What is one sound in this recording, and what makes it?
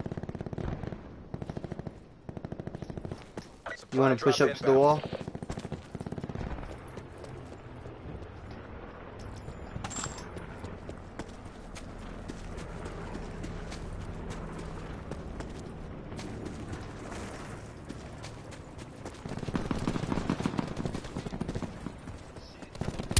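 Footsteps run quickly over grass and pavement.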